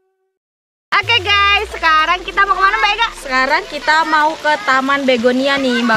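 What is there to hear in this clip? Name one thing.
A young woman speaks with animation close to a microphone, outdoors.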